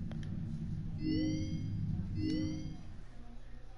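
An electronic chime sounds twice.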